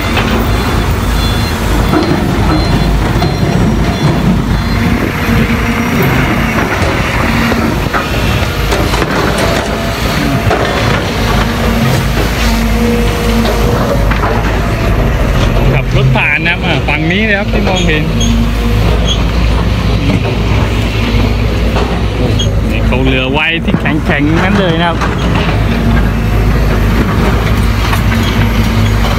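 A diesel dump truck engine runs.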